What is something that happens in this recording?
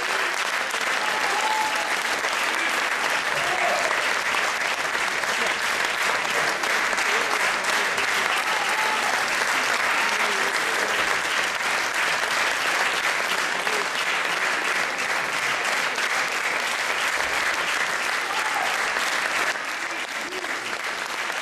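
An audience applauds steadily in a large hall.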